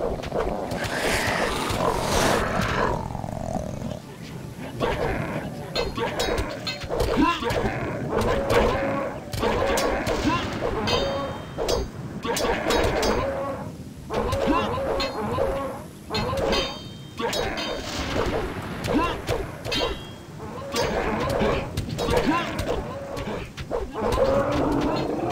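Swords swing and strike in a fight.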